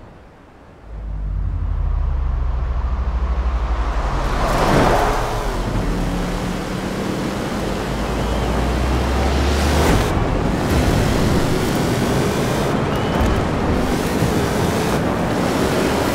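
A truck engine roars and revs hard.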